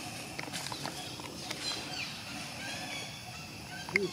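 Leaves and branches rustle as a monkey climbs through a tree.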